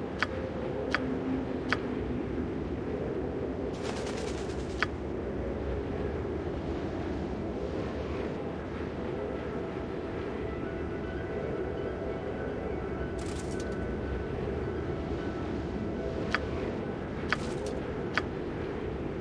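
Soft clicks sound as menu entries are selected.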